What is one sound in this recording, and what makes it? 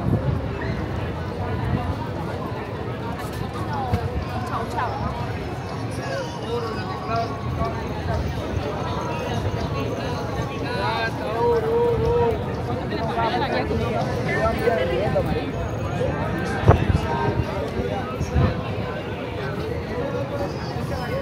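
A crowd of people chatters around outdoors.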